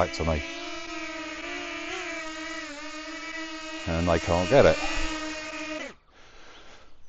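A small toy drone buzzes steadily with a high whine close by.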